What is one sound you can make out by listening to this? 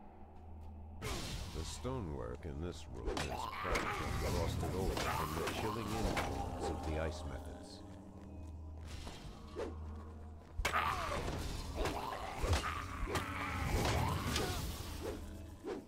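Magical spells whoosh and crackle in bursts.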